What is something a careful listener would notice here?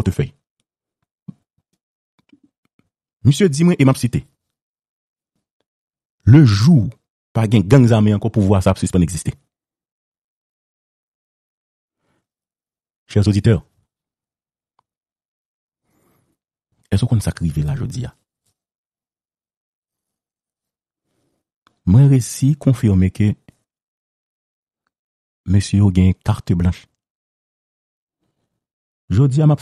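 A man speaks over a phone line in short bursts with long pauses.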